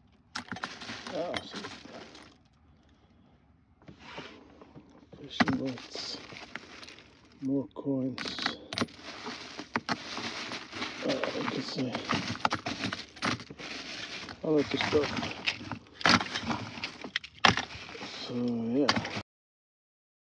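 Metal coins clink against each other as a hand rummages through them.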